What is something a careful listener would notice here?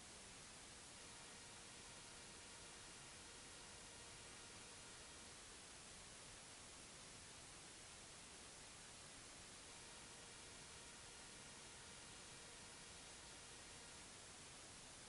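Acoustic guitars play a slow tune faintly.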